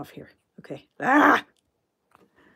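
A woman exclaims loudly.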